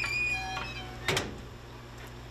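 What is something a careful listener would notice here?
A metal stove door clanks shut.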